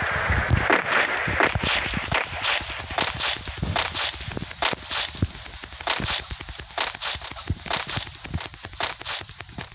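Footsteps thud quickly on soft ground.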